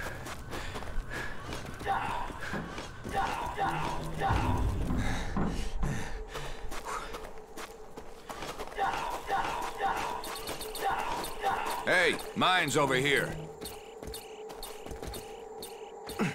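Footsteps run quickly over hard ground and sand.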